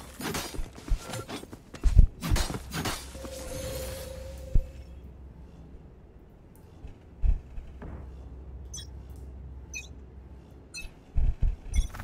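A magical orb hums and crackles.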